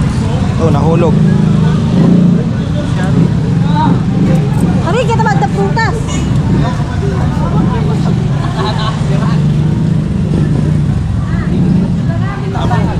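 Men and women chatter outdoors.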